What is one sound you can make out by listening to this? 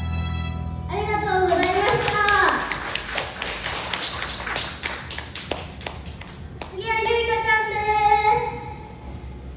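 A young girl sings through a microphone over loudspeakers.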